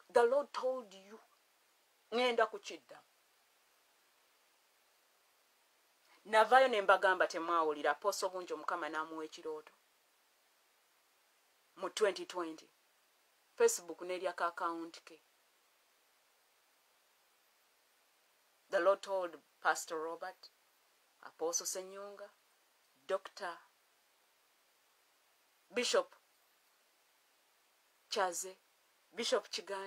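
A woman speaks calmly and close to a phone microphone, with pauses.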